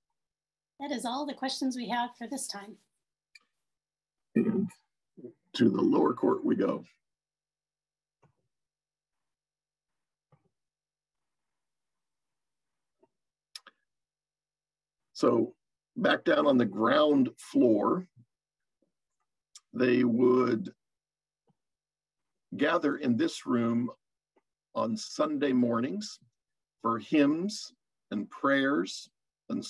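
A middle-aged man talks calmly over an online call.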